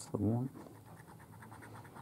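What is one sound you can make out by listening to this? A coin scratches at a card.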